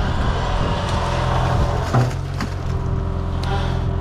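An excavator bucket thuds as it dumps mud.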